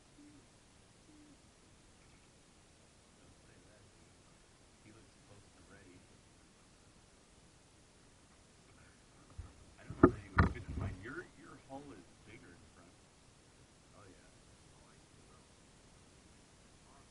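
Water laps softly against the hull of a kayak.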